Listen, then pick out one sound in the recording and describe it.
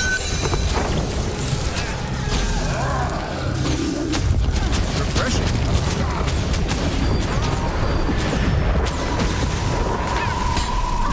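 Game spell effects crackle and whoosh in quick bursts.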